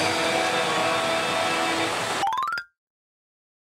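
A slot machine plays a bright electronic jingle.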